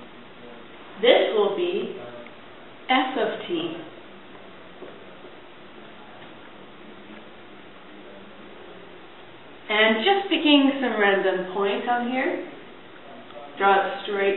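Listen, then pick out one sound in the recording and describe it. A young woman speaks calmly and clearly.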